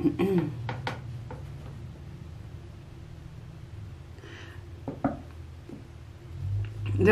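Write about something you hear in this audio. A middle-aged woman speaks quietly and haltingly, close by.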